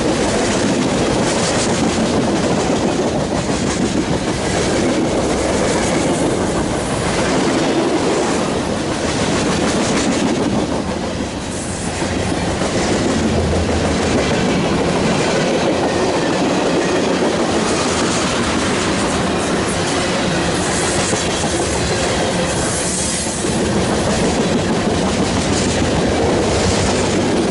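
A freight train rumbles past close by, loud and steady.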